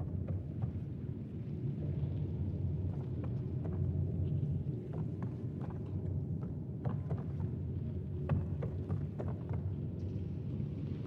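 Footsteps thud steadily on a hollow walkway.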